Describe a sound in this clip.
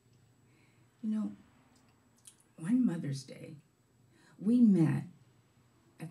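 An older woman speaks slowly into a microphone, in short phrases with pauses.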